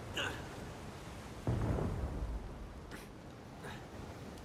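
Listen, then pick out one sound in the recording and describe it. Waves surge and break against rocks below.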